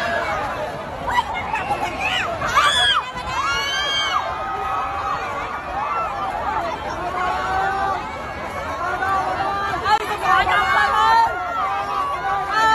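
Many voices chatter loudly in a dense crowd.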